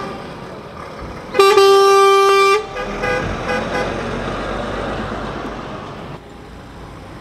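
A truck's engine rumbles as it drives slowly past close by.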